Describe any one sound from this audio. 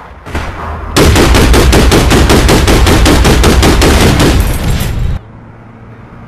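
A large explosion booms and roars.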